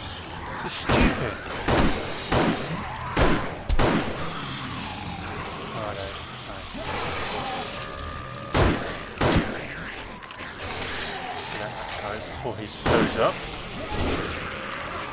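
A rifle fires in sharp, loud shots.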